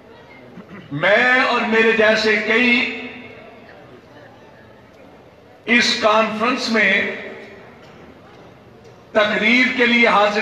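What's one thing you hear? A man speaks forcefully into a microphone through a loudspeaker, in bursts with pauses.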